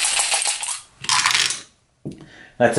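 Dice rattle and tumble to a stop.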